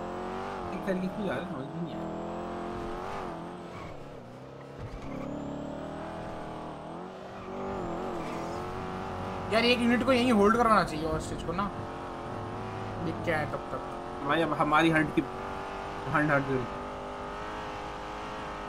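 A car engine hums steadily and revs as the car speeds up.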